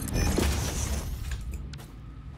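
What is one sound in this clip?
An electronic tool buzzes and crackles.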